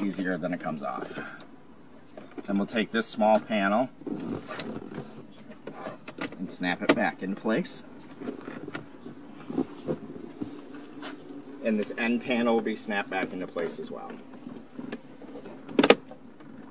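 Plastic trim clicks as a hand works at a car's dashboard.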